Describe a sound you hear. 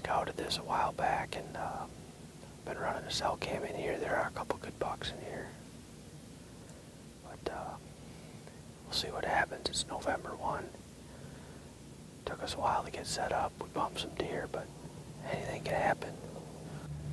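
A man speaks calmly and quietly, close by, in short phrases.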